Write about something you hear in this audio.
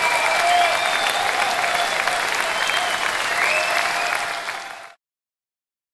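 A fiddle plays a slow melody.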